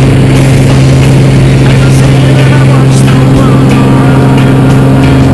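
A small plane's propeller engine drones loudly and steadily.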